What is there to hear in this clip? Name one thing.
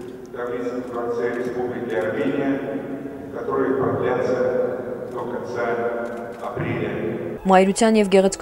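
An older man speaks calmly into a microphone in a reverberant hall.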